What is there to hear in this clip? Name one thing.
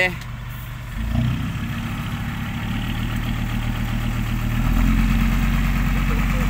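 A truck's dump bed whines as it tips up.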